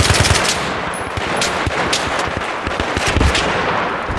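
A rifle magazine is pulled out and clicks into place.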